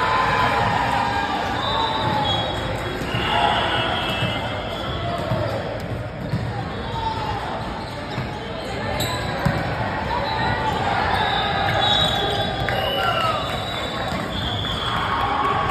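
Young adults call out to one another across a large echoing hall.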